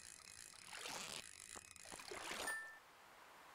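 A fishing reel whirs in quick bursts.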